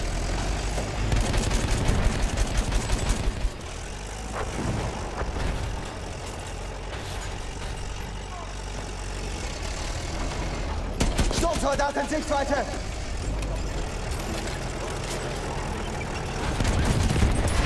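A tank cannon fires with a loud blast.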